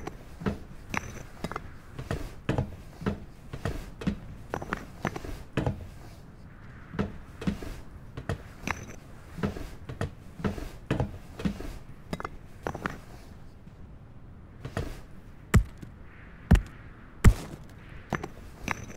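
Footsteps crunch on leaves and gravel at a steady pace.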